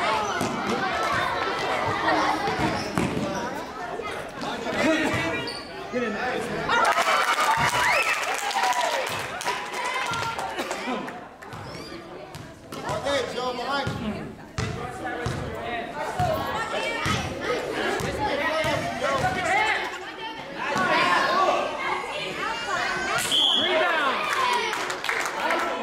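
Spectators and players shout and cheer, echoing in a large hall.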